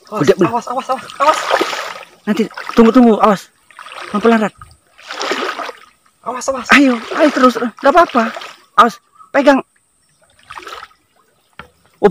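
Water splashes as a person wades and moves about in it.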